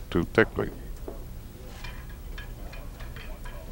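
Pool balls click together on a table.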